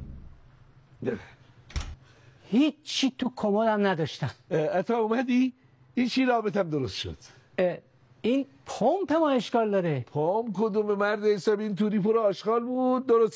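A middle-aged man speaks loudly and with animation.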